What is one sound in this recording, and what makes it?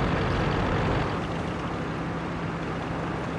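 A tank engine idles more quietly.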